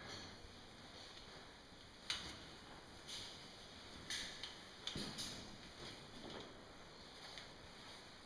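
A rope rubs and rustles through metal gear.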